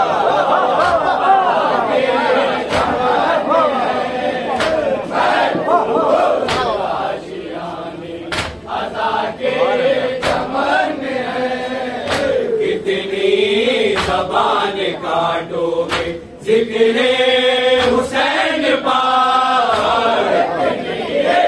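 A crowd of men chants together.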